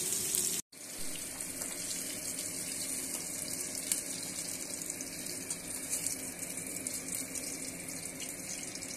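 A metal spatula scrapes and stirs against a pan.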